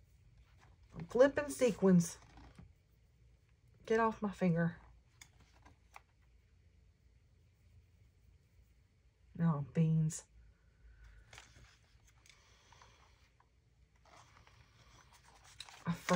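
Paper rustles softly under a pair of hands.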